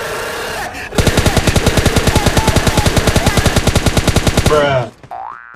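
A rifle fires in a rapid automatic burst.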